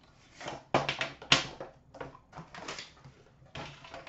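A metal tin clatters onto a glass counter.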